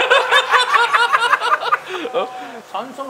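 A man laughs loudly and talks with animation close by.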